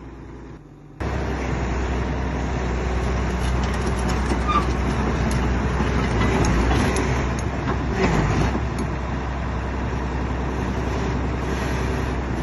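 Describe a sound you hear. Steel tracks clank and grind as a heavy machine drives over gravel.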